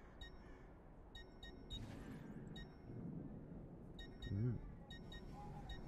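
Short bright menu clicks tick now and then.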